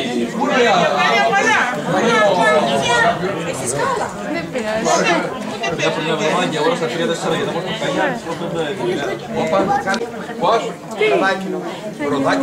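A crowd of men and women chatter close by, outdoors.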